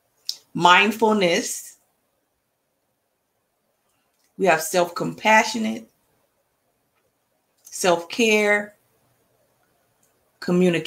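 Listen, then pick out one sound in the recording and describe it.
A woman speaks calmly in short phrases through an online call.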